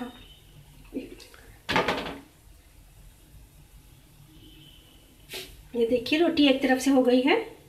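A flatbread sizzles softly on a hot pan.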